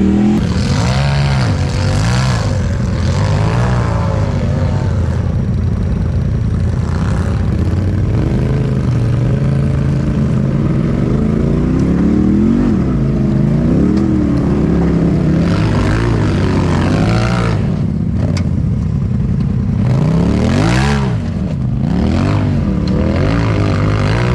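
An off-road vehicle's engine rumbles and revs up and down.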